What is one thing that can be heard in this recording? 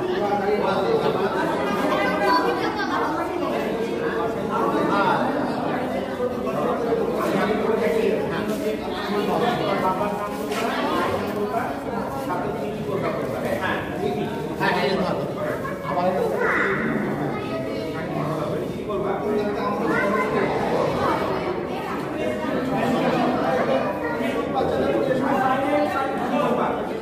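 A crowd of adults and children chatters indoors.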